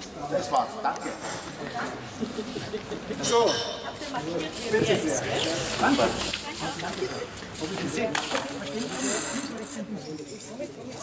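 A man talks with animation in a large echoing hall.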